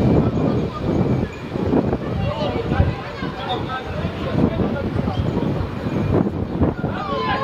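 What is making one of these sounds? Young boys shout to each other across an open field.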